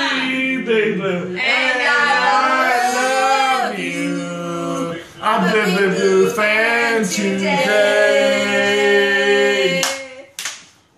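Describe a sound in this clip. A group of men and women cheer and sing loudly close by.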